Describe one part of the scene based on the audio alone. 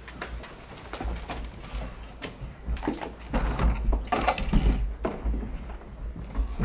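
Feet shuffle as people move about.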